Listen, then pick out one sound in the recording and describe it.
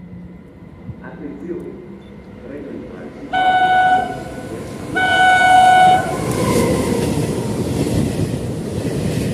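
A passenger train approaches and roars past on the tracks.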